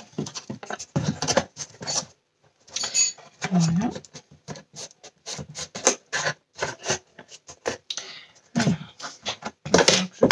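A cardboard box scrapes and bumps as it is moved across a table.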